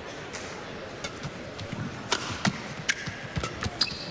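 A badminton racket smacks a shuttlecock back and forth in a quick rally.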